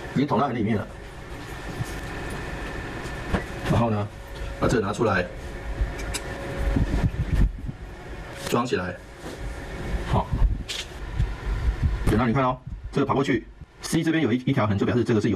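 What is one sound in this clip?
A middle-aged man speaks calmly and explains, close to a microphone.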